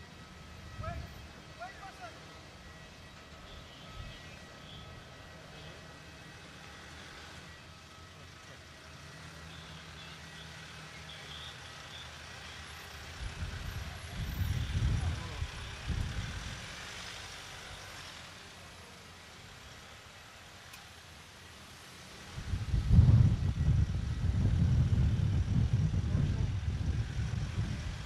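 Car engines hum as vehicles drive slowly past, outdoors.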